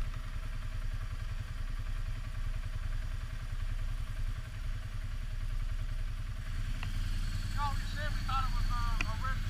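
A quad bike engine rumbles steadily up close.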